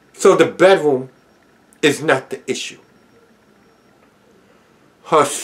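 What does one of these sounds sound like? A man speaks calmly and close to the microphone, in short phrases with pauses.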